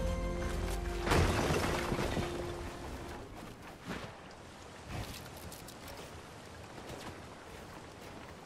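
Wooden walls and ramps are built with quick knocking clatters.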